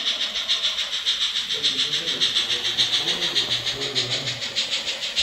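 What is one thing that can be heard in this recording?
A model steam locomotive chuffs rapidly and steadily as it runs along the track.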